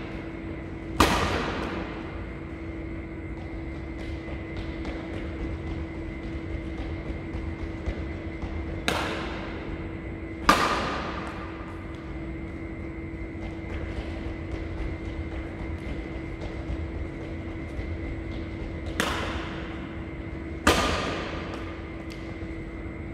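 Rackets strike a shuttlecock with sharp smacks that echo through a large hall.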